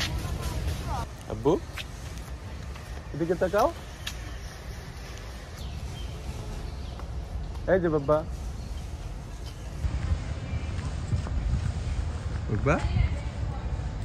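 A young child calls out loudly outdoors.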